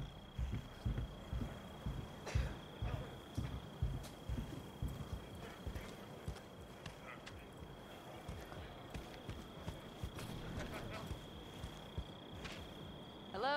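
Footsteps thud at a walking pace.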